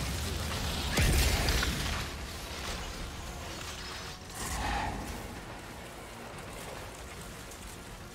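Water splashes underfoot.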